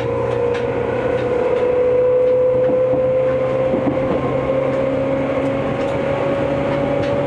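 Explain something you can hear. A steady whining hum drones inside a train carriage.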